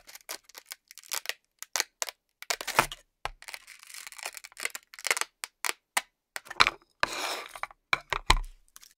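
A pencil taps and scrapes against a hard board.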